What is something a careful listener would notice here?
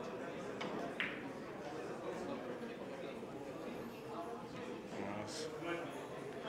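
Billiard balls click sharply together.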